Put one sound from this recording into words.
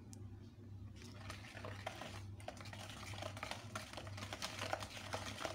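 A whisk clicks and scrapes quickly against a bowl.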